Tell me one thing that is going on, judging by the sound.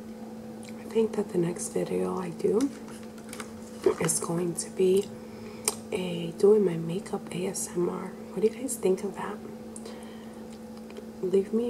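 A woman speaks softly and close to the microphone.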